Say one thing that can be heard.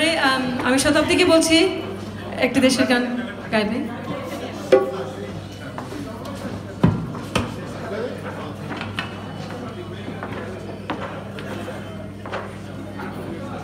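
A tabla drums a rhythm.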